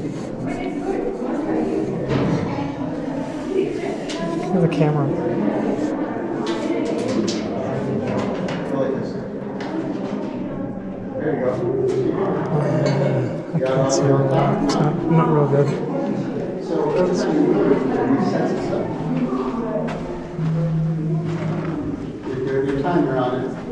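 Men and women chatter and talk nearby, with a slight echo.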